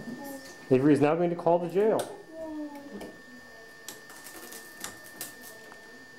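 Cord plugs click into a switchboard.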